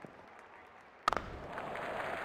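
A cricket bat cracks against a ball.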